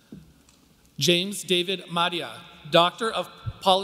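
A man announces through a loudspeaker in a large hall.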